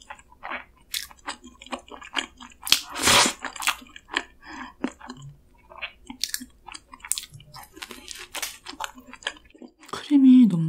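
A young woman chews soft pastry close to a microphone, with wet smacking sounds.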